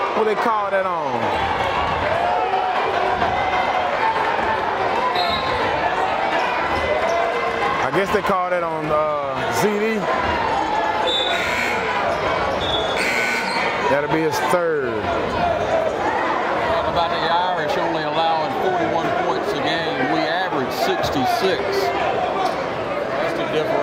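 A crowd chatters and murmurs throughout a large echoing gym.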